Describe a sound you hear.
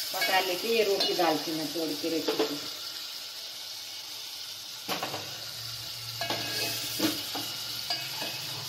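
A metal ladle scrapes and clinks against a steel pot.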